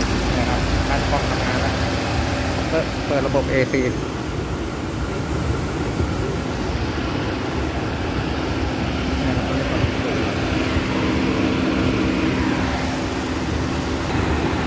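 A car engine idles steadily close by.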